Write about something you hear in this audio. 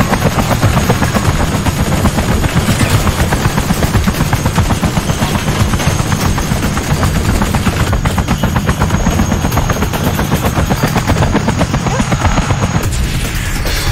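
Fast game music with a pounding beat plays throughout.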